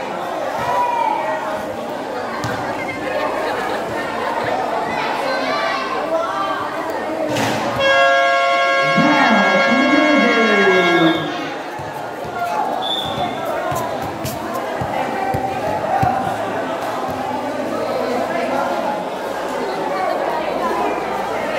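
A crowd of young people chatters and calls out in a large echoing hall.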